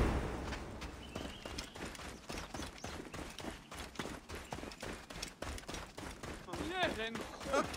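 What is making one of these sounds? Footsteps run quickly on a dirt path.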